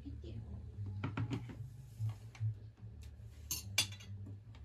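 Forks clink against plates.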